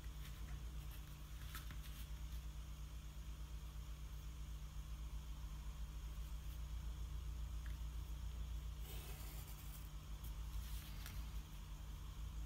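A plastic protractor slides over paper.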